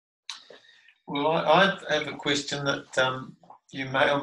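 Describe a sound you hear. A man speaks calmly in a room.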